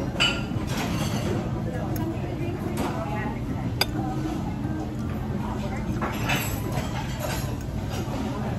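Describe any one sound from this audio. A metal fork and knife scrape and clink against a plate.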